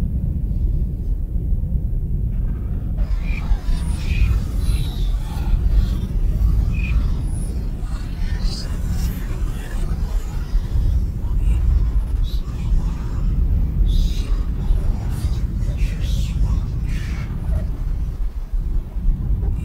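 Deep electronic drones rumble loudly.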